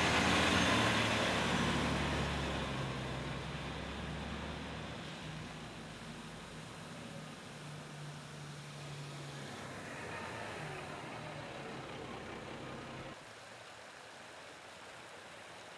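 Water gushes and splashes steadily from a broken hydrant.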